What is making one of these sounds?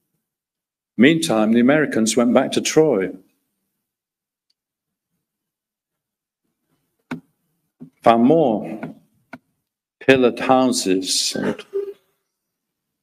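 A middle-aged man speaks calmly into a microphone, giving a lecture.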